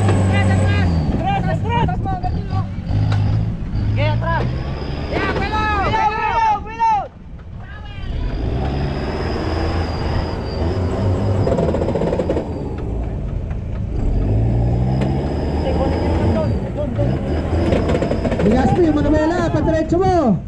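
An off-road engine revs hard and labours close by.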